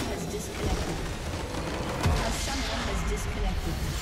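A game structure explodes with a deep boom.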